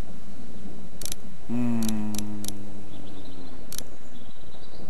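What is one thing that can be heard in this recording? Short electronic menu clicks sound a few times.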